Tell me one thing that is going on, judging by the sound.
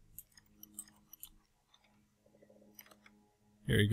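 A lock clicks as it is picked.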